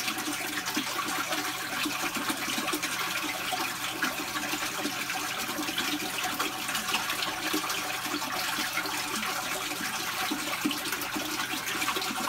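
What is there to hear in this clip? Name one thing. Lizard claws scrape and tap against a metal bowl.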